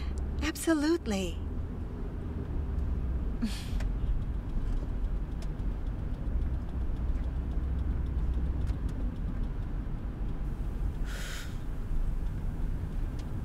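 A low engine rumble hums steadily inside a moving car.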